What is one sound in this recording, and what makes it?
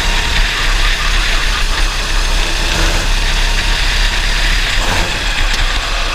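Wind buffets a microphone on an open kart at speed.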